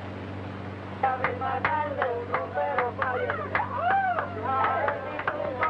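Several men sing loudly together.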